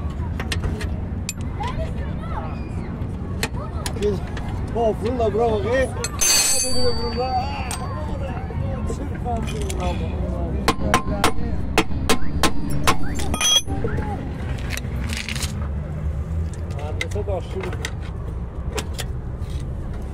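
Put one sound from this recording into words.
Metal parts clink and knock close by.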